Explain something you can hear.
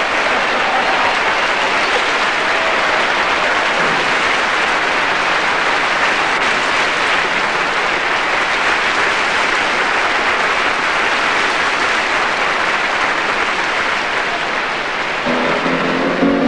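A large audience applauds loudly and steadily.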